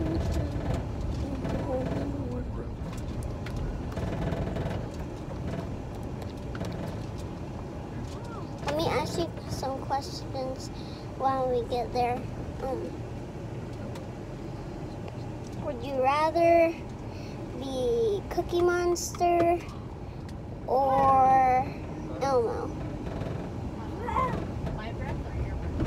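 A car engine hums steadily with road rumble.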